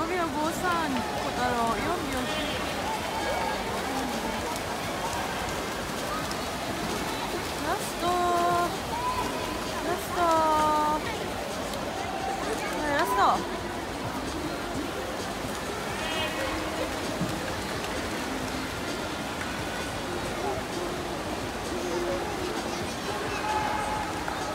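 Swimmers splash through the water doing butterfly stroke.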